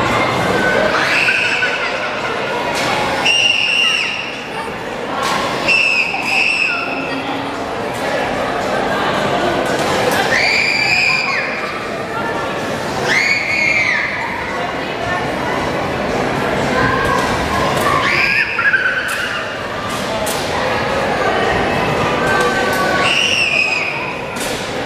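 A woman screams with excitement close by.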